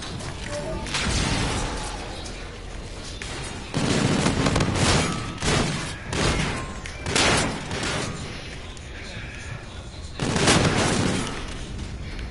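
Bursts of rapid gunfire crack loudly.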